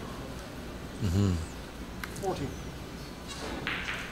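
A snooker ball is set down on the table with a soft knock.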